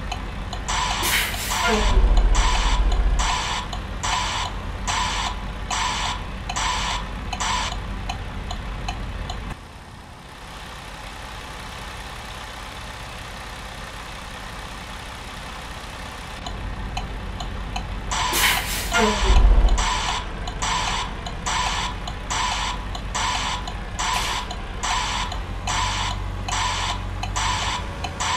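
A truck engine idles with a low rumble.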